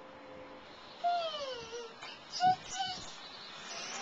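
A toddler squeals and babbles up close.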